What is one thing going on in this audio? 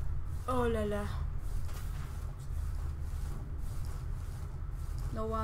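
A young woman speaks briefly and casually into a microphone.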